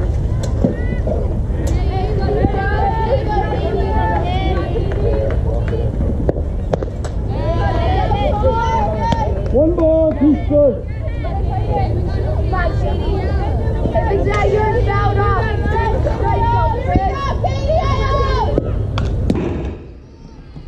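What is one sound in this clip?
Young girls shout and cheer outdoors.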